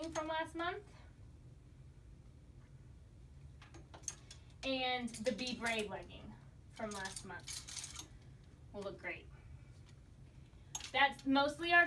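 A young woman speaks calmly and close by, in short phrases with pauses.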